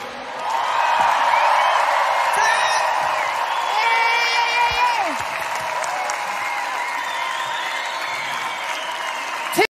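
A large crowd cheers and screams loudly in a big echoing hall.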